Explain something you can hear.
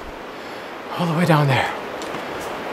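A man exclaims loudly in surprise.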